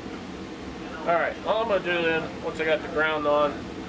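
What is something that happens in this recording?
A man speaks close by, calmly explaining.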